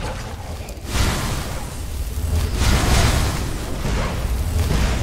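A magic spell hisses and crackles.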